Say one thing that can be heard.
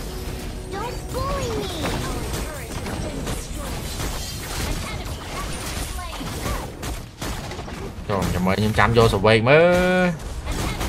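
Video game battle effects zap and clash.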